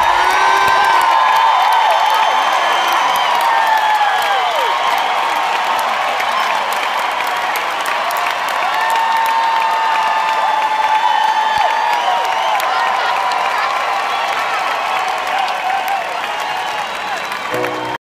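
A crowd claps along.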